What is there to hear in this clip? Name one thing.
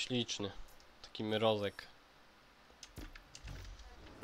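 Soft menu clicks sound as selections change.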